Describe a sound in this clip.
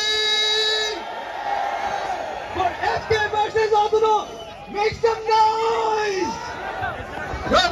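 A man shouts into a microphone over loudspeakers.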